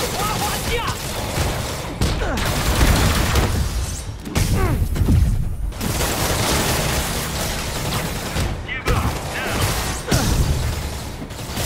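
Heavy punches and kicks land with loud thuds.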